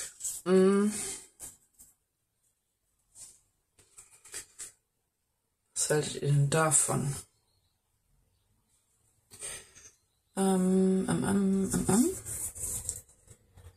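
Small paper strips rustle and crinkle as they are handled.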